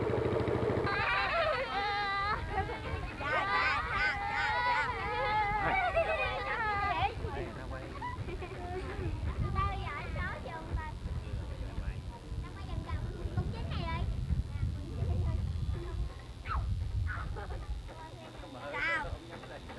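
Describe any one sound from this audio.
A boat engine rumbles low and steadily.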